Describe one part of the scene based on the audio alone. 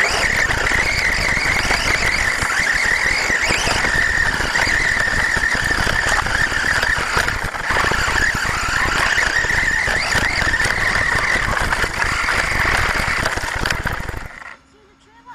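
A small drone's propellers whine steadily in flight, then cut out.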